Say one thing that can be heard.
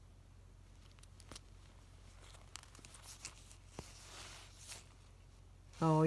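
Stiff fabric rustles softly as hands handle it.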